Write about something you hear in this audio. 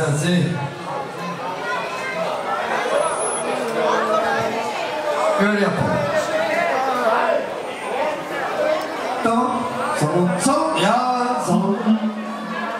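A man speaks with animation into a microphone, heard through loudspeakers.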